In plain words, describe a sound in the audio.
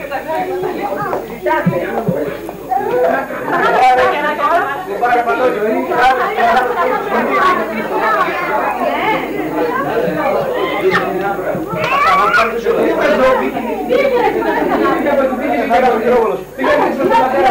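A crowd of people chatter and talk over one another.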